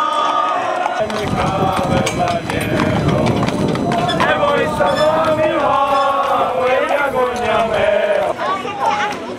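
A group of men sing loudly together outdoors.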